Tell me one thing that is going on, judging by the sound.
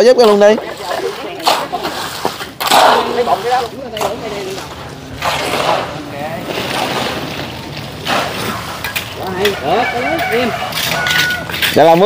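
A wheelbarrow rattles as it is pushed over concrete.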